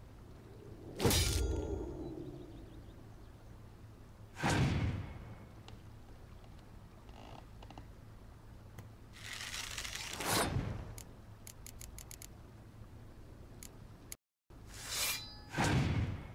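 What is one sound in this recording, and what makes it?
Swooshing card game effects sweep in and fade, several times.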